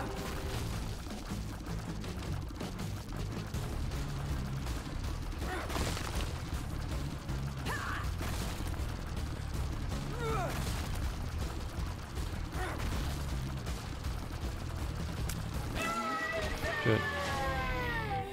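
Small shots pop and splash as a game character fires tears.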